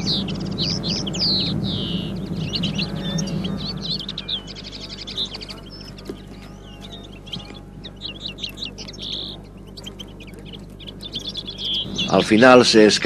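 Small birds chirp and twitter in a tree.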